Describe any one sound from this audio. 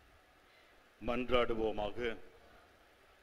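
A man reads out calmly through a microphone.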